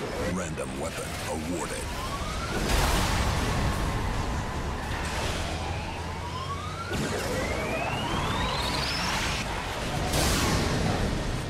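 A truck engine rumbles and revs steadily.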